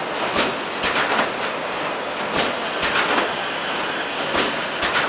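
A heavy press thumps and clanks now and then.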